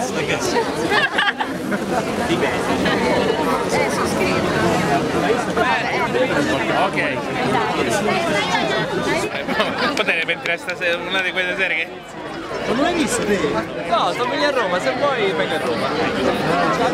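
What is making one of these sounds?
A crowd of young men and women chatters and laughs close by outdoors.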